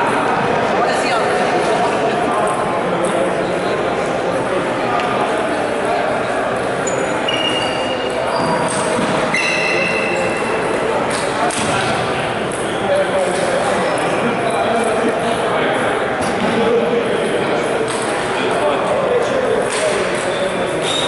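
A ping-pong ball clicks back and forth on a table and paddles in an echoing hall.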